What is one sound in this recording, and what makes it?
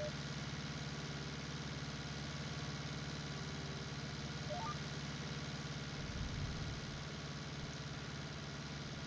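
A tractor engine hums steadily from inside the cab.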